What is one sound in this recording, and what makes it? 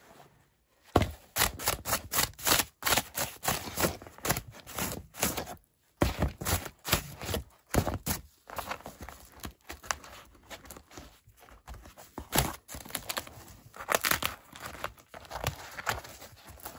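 A blade scrapes and rasps across a crusty flatbread.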